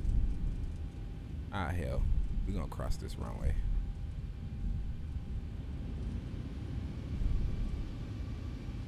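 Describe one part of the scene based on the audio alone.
Jet engines rumble low and steady.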